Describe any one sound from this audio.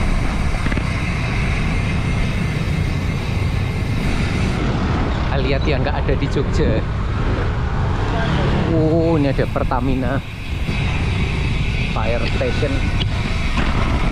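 Strong wind rumbles across a microphone outdoors.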